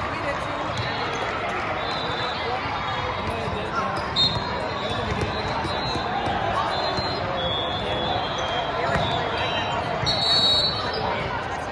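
Young players talk and call out together in a huddle.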